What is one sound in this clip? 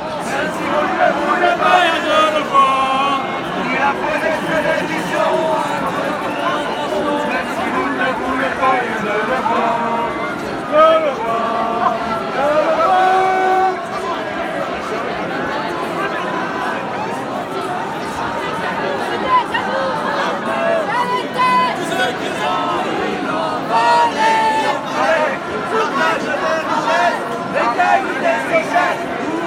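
A large crowd of men and women talks and chatters loudly outdoors.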